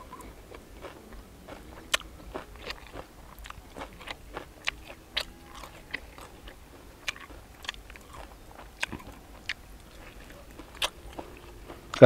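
Crisp grilled meat crackles as fingers pull it apart.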